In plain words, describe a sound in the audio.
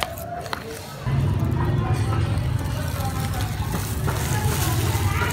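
Oil pours and splashes into a metal wok.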